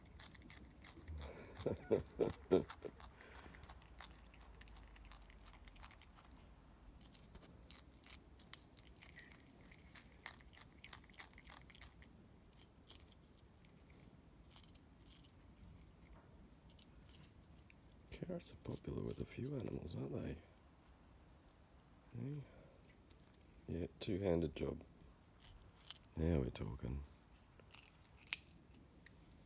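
A possum chews and crunches on a carrot close by.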